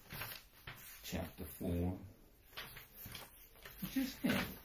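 A young man speaks in a low voice close by.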